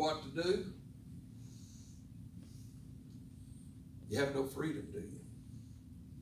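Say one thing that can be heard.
An elderly man speaks slowly and calmly into a microphone over a loudspeaker, with long pauses.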